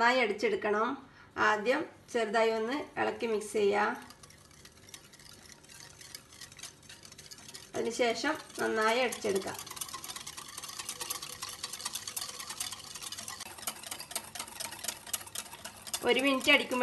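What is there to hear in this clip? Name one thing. A wire whisk clinks rapidly against a glass bowl.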